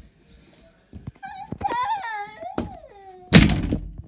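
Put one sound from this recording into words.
A young boy shouts with excitement, close by.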